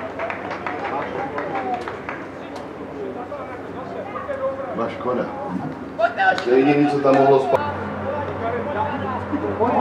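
Football players shout to one another across an open pitch outdoors.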